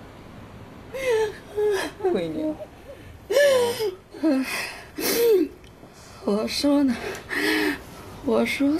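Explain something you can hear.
A middle-aged woman speaks tearfully and pleadingly close by.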